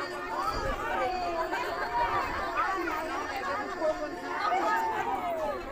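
A crowd of men and women talk and call out together outdoors.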